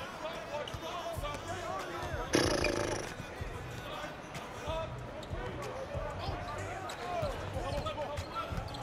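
A large crowd murmurs steadily in an arena.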